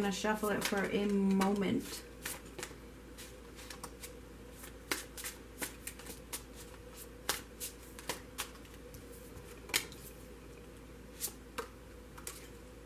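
Cards are shuffled and laid down on a hard tabletop with soft taps.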